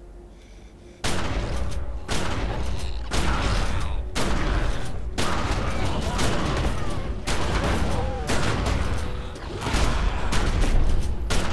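Weapons strike and clash in a loud, busy fight.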